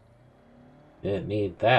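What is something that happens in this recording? A man speaks loudly into a headset microphone.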